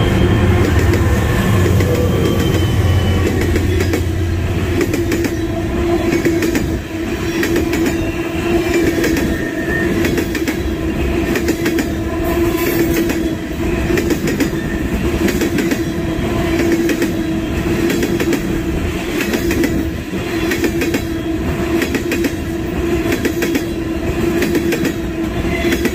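Freight wagons roll past close by, their wheels clattering rhythmically over the rail joints.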